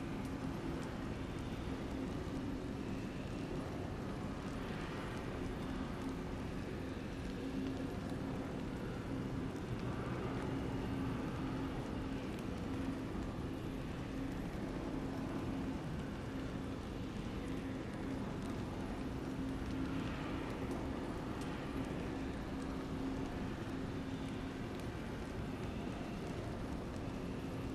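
A spinning ring hums low and steadily.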